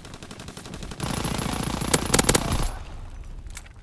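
A submachine gun fires a rapid burst close by.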